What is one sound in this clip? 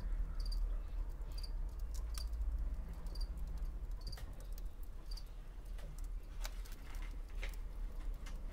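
A pen scratches and taps lightly on paper.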